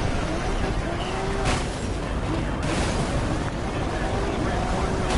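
A sports car engine roars at high revs.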